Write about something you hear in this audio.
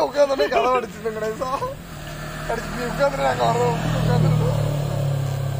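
Young men talk with animation close by, outdoors.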